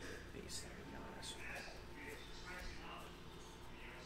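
Cards riffle and flick softly against each other.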